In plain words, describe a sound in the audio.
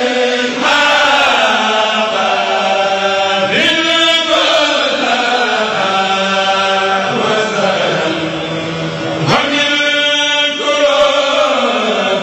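A group of men sing together through loudspeakers in a large crowd.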